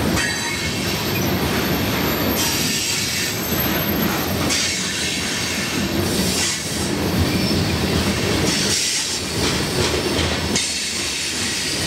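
Steel wheels squeal and screech on the rails.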